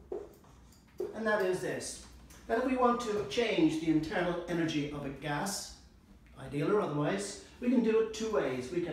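An older man speaks calmly, as if lecturing.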